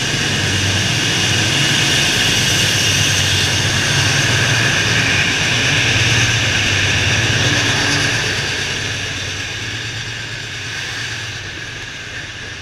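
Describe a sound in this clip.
A locomotive's diesel engine rumbles loudly close by.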